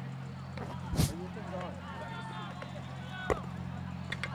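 A hockey stick strikes a ball with a sharp crack.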